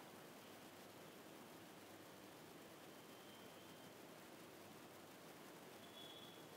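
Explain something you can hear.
Oil sizzles softly in a pot.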